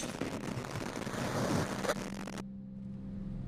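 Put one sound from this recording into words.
Static hisses loudly.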